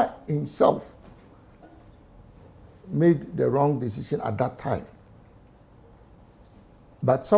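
A middle-aged man speaks with animation close to a microphone, in short bursts with pauses.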